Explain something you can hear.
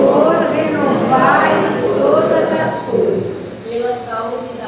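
An older woman reads aloud through a microphone in a room with some echo.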